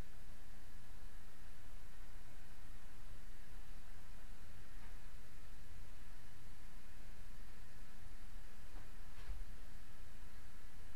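A trowel scrapes softly against a wall.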